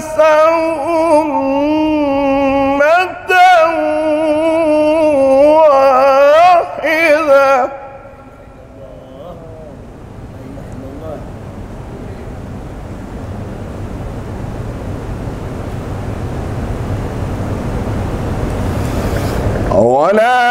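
A man chants loudly into a microphone in a long melodic call, heard through a loudspeaker with echo.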